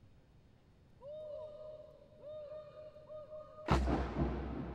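A man calls out long drawn-out commands that echo through a large empty hall.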